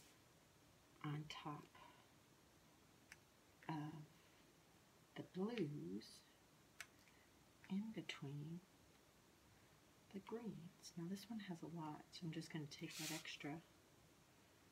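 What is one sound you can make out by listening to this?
A middle-aged woman talks calmly and close by, in short bursts.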